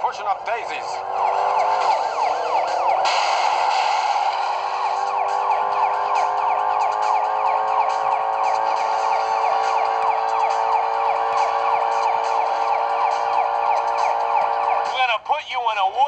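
A police siren wails steadily.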